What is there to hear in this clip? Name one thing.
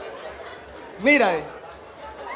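A man cries out loudly into a microphone.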